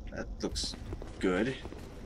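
Footsteps fall on a stone floor.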